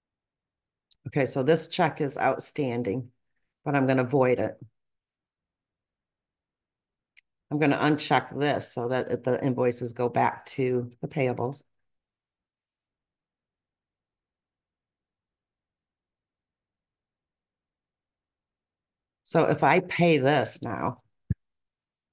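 A woman speaks calmly into a microphone, heard close up, in short bursts with pauses.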